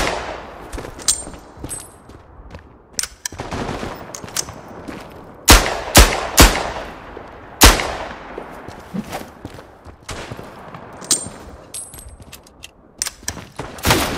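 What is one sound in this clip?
A pistol is reloaded with metallic clicks.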